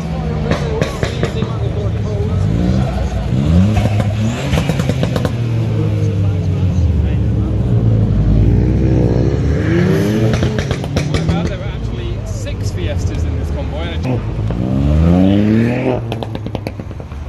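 Exhausts crackle and pop sharply.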